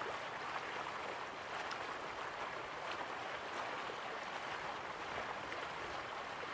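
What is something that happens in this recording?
Waterfalls rush steadily in the distance.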